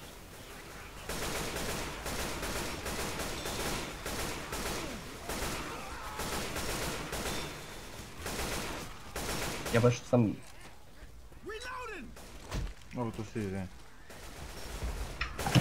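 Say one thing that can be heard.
Automatic gunfire rattles in rapid bursts.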